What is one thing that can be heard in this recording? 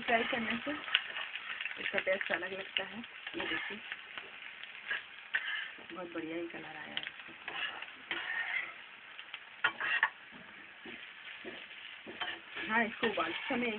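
Food sizzles in a frying pan.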